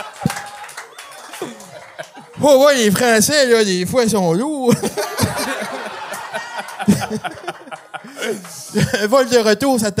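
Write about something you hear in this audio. Several men laugh heartily.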